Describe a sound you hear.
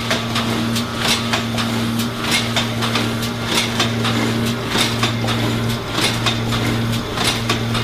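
A packaging machine clatters with quick repeated mechanical clicks.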